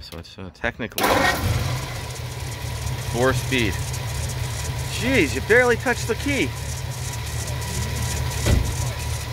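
A car engine starts and idles with a steady low rumble.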